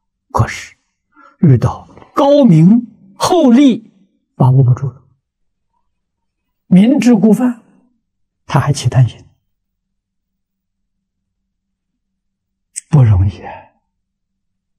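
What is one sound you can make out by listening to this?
An elderly man speaks calmly and with feeling into a microphone, in short phrases with pauses.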